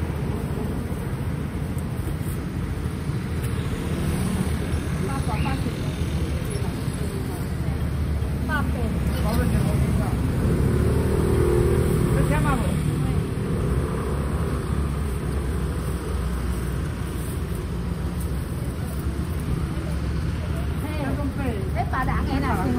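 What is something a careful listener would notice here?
Street traffic rumbles steadily nearby, with motorbikes passing.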